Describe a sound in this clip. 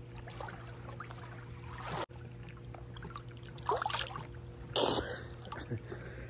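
Water splashes as a man swims up close.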